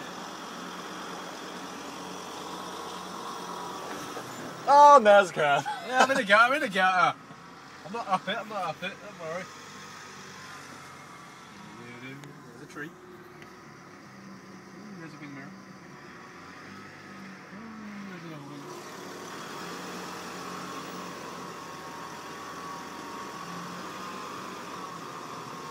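A vehicle engine hums steadily, heard from inside.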